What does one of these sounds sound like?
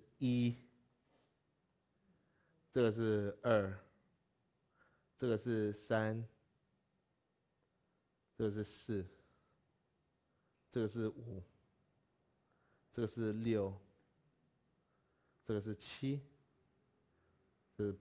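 A man speaks calmly through a headset microphone in short phrases with pauses.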